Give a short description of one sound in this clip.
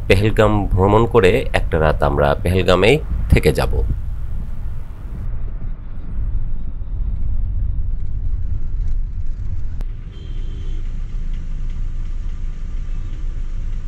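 A car engine rumbles low and steady from inside a moving car.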